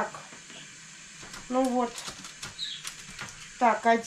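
Vegetables rustle and knock on a tray as they are handled.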